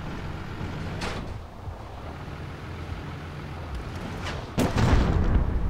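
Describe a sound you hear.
A tank cannon fires with booming blasts.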